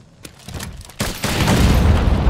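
A light bowgun fires shots.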